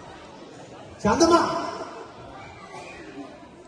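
A young man speaks loudly into a microphone in an echoing hall.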